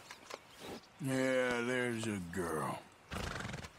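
A horse whinnies loudly.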